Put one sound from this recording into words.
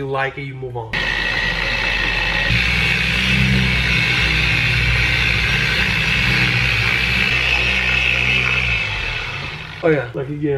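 Electric polishing machines whir steadily.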